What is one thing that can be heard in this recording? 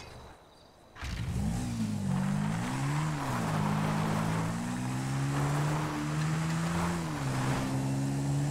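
A motorbike engine starts and revs loudly, rising and falling as it rides away.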